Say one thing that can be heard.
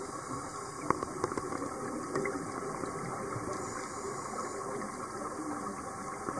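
Bubbles from a diver's breathing gurgle underwater.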